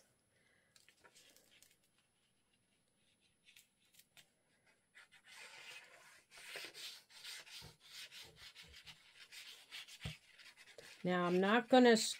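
Paper rustles softly as it is rubbed and pressed flat.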